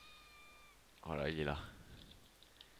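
A large bird creature lets out a loud, harsh cry.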